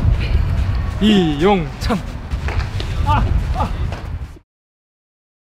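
A man talks playfully up close.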